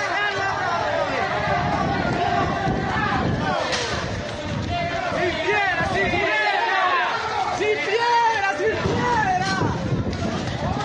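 A crowd of men and women shouts and chatters outdoors nearby.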